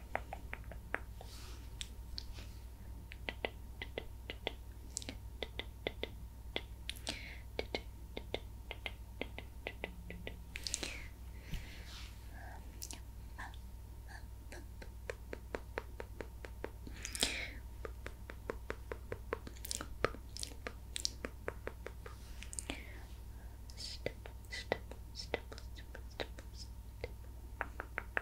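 A brush swishes softly against a microphone.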